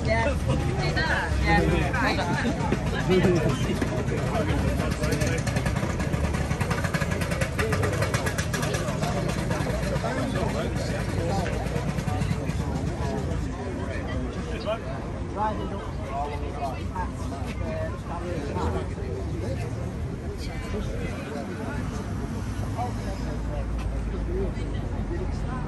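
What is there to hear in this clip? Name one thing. A crowd of men chatter nearby outdoors.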